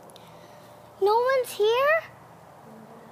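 A young woman calls out close by.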